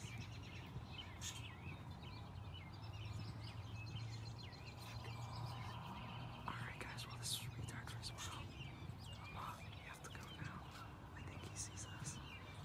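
A small bird chirps and twitters from a tree.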